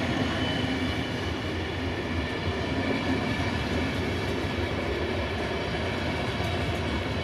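A passenger train rolls past close by with a steady rumble.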